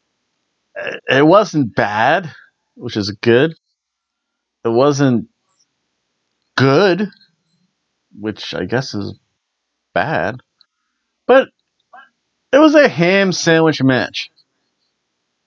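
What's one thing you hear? A middle-aged man talks in a relaxed, animated way close to a microphone.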